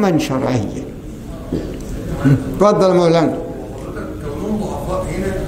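An elderly man speaks calmly and earnestly into a microphone, in a slightly echoing room.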